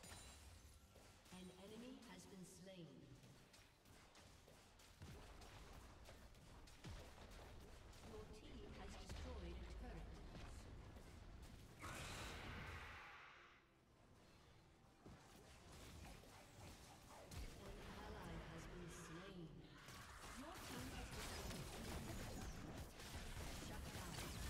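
Magic blasts and clashing hits from a video game battle crackle and thump.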